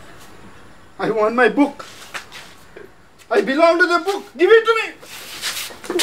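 A man pleads loudly and urgently nearby.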